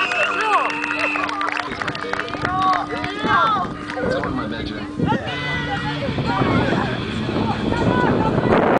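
Young women shout and cheer together outdoors.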